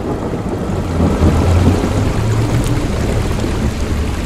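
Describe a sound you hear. Strong wind blows and howls outdoors.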